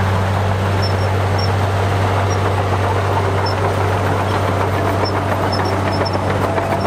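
A bulldozer engine rumbles steadily.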